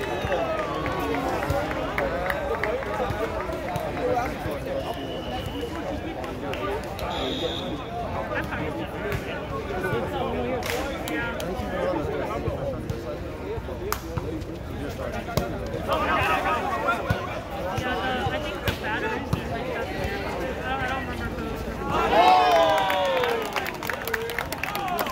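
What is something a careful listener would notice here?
A crowd of young men and women chatters and calls out outdoors.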